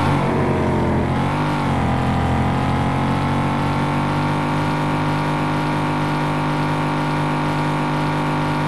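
A car engine hums steadily as a vehicle drives along.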